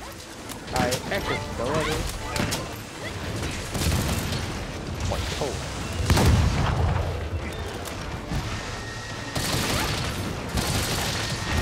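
Weapon blows strike a monster with sharp, repeated hits.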